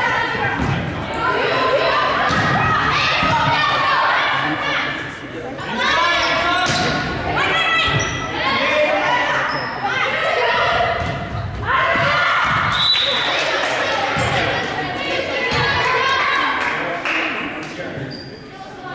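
Young players shout and call out to each other in a large echoing gym.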